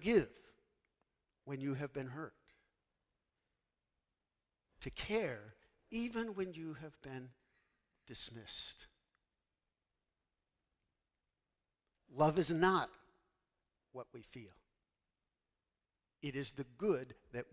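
A man speaks calmly through a microphone in a large echoing hall, with long pauses.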